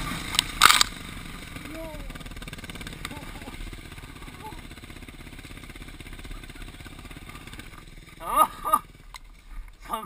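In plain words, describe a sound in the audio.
A quad bike engine drones steadily up close.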